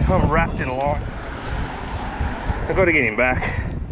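Footsteps scuff on concrete.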